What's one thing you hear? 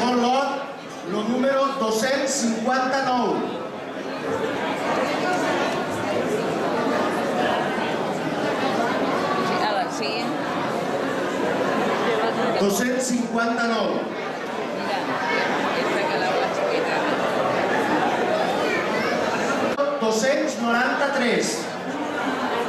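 A man reads out loudly through a microphone and loudspeakers in a large echoing hall.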